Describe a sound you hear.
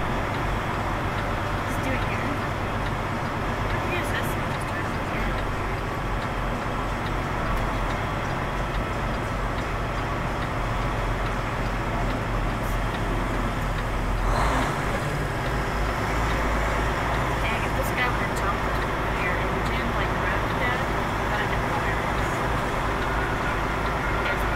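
A vehicle engine hums steadily as it drives slowly through a large echoing hall.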